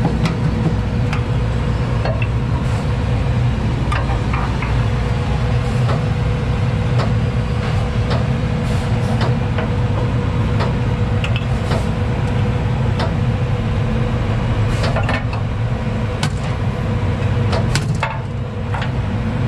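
Metal couplings on trailer air and electrical lines click and clack as they are connected by hand.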